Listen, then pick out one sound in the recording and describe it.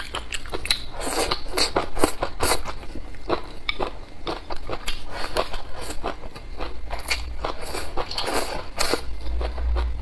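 A young woman slurps noodles loudly, close up.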